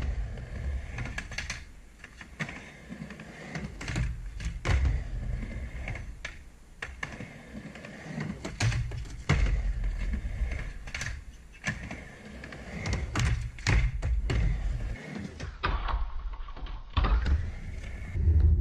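Skateboard wheels rumble and roll back and forth on a wooden ramp.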